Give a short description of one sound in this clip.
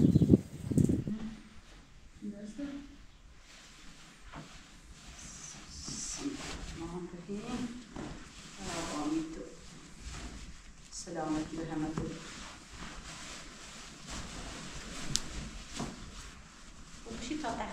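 Fabric rustles as it is unfolded and handled.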